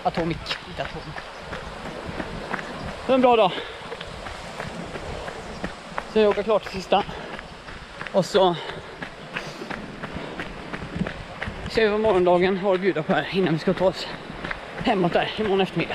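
Footsteps thud on a path.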